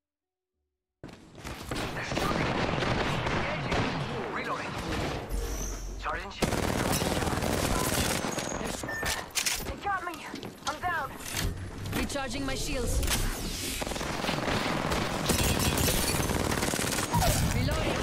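Gunfire rattles loudly.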